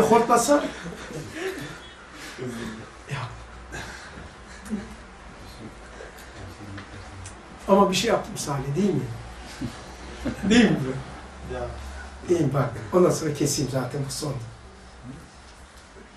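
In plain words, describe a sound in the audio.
An elderly man speaks calmly and with feeling into a nearby microphone.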